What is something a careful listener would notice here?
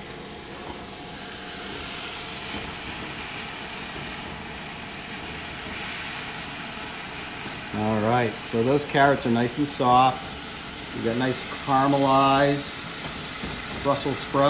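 Food sizzles and hisses in a hot wok.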